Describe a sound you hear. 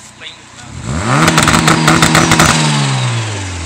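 A car exhaust crackles and pops.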